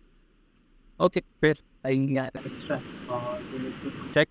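A young man speaks through an online call.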